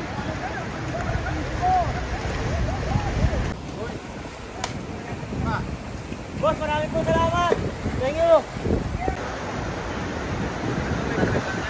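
A vehicle drives through floodwater with splashing water.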